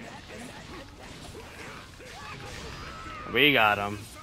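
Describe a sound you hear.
Fast blows and whooshing blasts clash in a fight.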